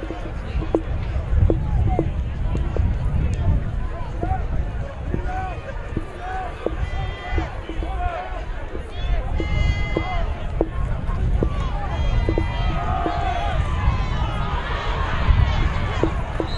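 A crowd murmurs and calls out from the stands.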